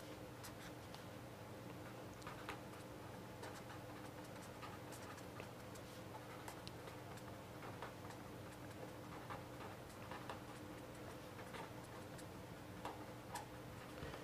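A marker pen squeaks and scratches on paper.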